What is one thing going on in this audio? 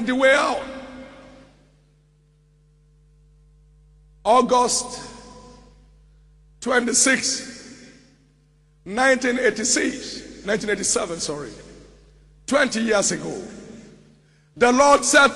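A man preaches forcefully in bursts through a microphone, echoing in a large hall.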